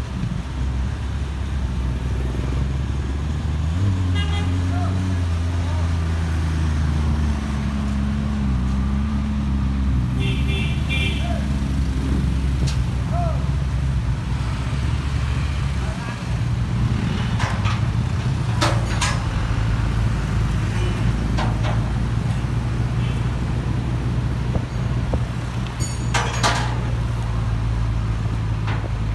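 A twin-turbo V8 McLaren sports car engine runs with a low rumble.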